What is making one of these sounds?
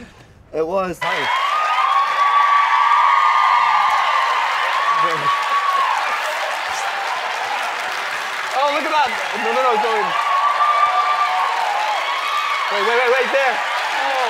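A studio audience cheers and laughs loudly.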